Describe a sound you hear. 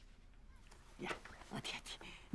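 An elderly woman speaks with emotion, close by.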